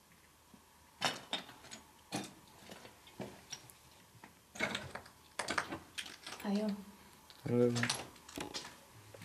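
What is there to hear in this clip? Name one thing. A young woman speaks quietly and close by.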